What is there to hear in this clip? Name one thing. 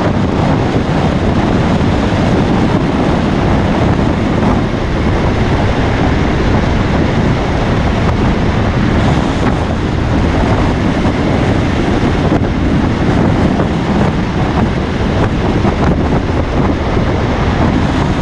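Tyres roar loudly on the road surface.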